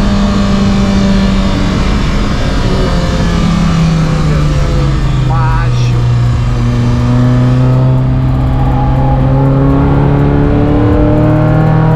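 A car engine roars loudly inside the cabin, its pitch falling and then climbing steadily.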